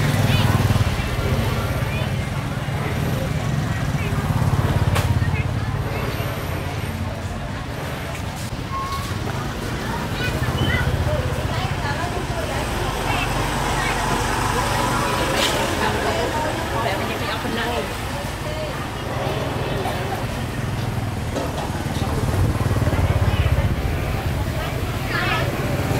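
People chatter faintly in the background.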